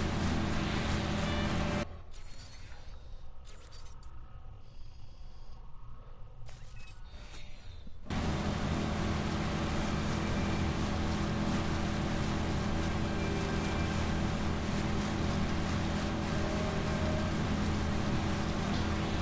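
Water splashes and rushes against a boat's hull.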